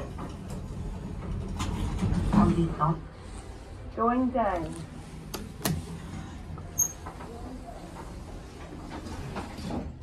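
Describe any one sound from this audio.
Elevator doors slide open and then shut with a rumble.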